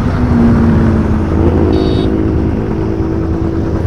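A bus engine rumbles as the bus drives past.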